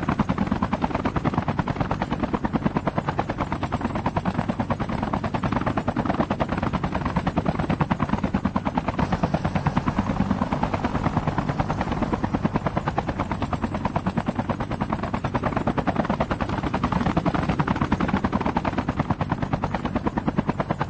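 Helicopter rotor blades thump rapidly and steadily overhead.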